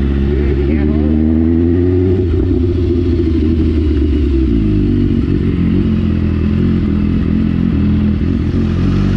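A motorcycle engine hums steadily at low speed.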